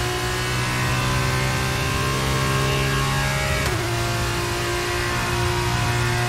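A racing car engine screams loudly at high revs.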